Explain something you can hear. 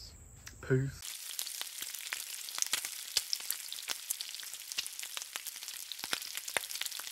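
Bacon sizzles and pops loudly on a hot griddle.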